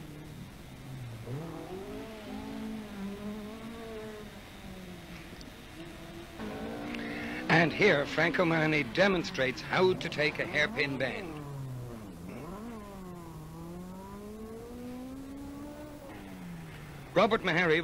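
A rally car engine revs hard and roars as the car races past.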